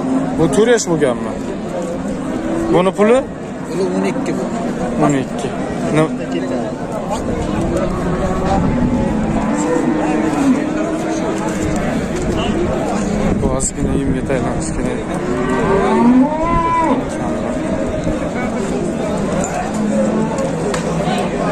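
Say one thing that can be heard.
A crowd of men talks all around outdoors.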